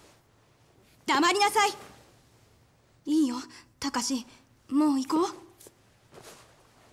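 A young man gasps and speaks in fear.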